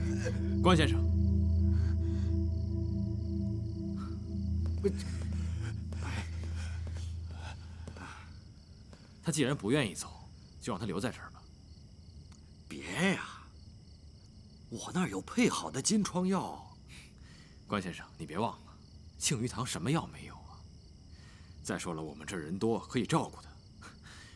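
A middle-aged man speaks calmly and warmly, close by.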